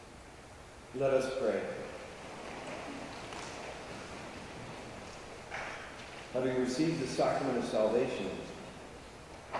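A man's voice rings out through a loudspeaker at the altar in a large echoing hall.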